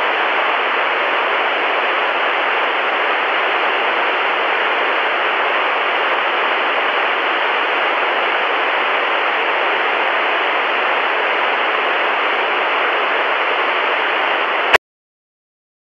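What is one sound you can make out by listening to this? A television hisses with loud, steady static.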